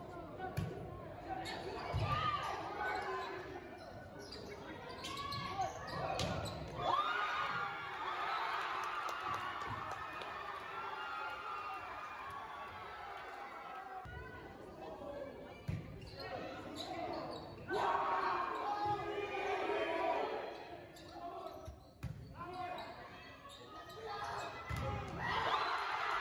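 A volleyball thumps as players hit it, echoing in a large gym.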